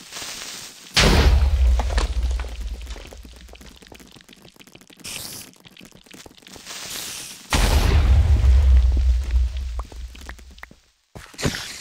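An explosion booms with a deep rumble that slowly fades.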